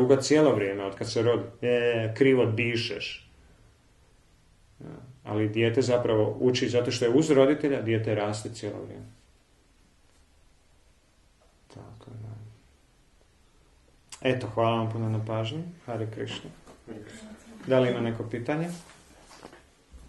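A man talks calmly and close by, with pauses.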